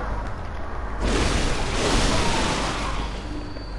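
A blade slashes into a body with a wet burst.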